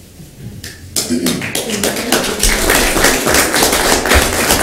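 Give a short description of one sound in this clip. A crowd claps loudly.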